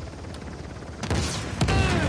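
A gun fires rapidly.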